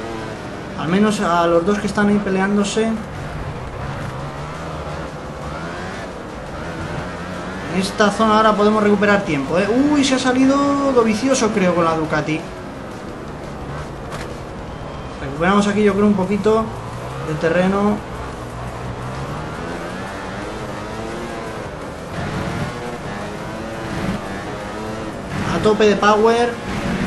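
A motorcycle engine roars, revving up and down as it shifts gears.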